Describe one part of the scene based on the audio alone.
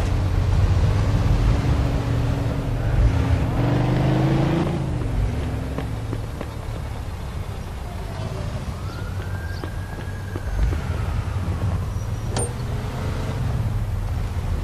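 A bus engine rumbles and idles nearby.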